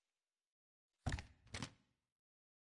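Snooker balls click together.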